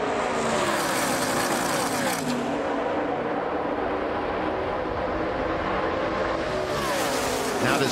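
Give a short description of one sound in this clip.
Many race truck engines roar loudly at high speed.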